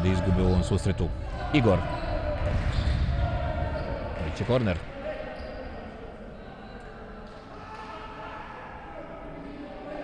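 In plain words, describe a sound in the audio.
A ball thumps as players kick it.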